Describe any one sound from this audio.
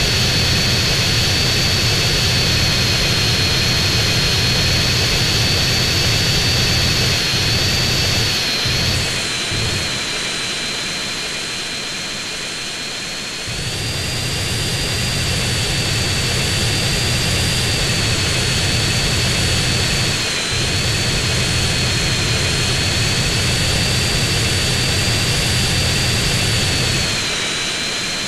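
Jet engines roar steadily, with a high whine rising and falling.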